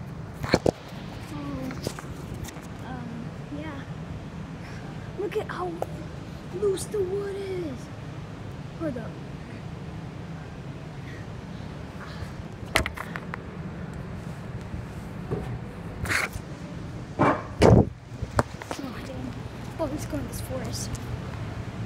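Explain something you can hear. A boy talks close by, casually.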